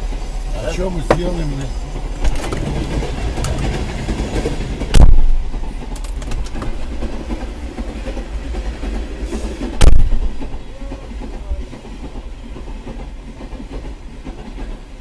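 A long freight train rumbles and clatters past nearby.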